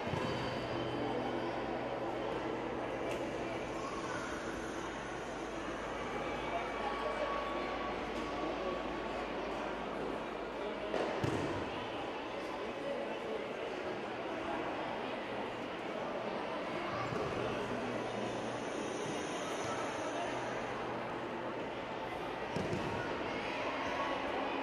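Bodies thud onto a padded mat as judo players throw each other.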